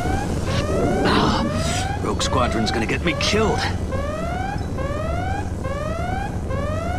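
Electricity crackles and buzzes in sharp bursts.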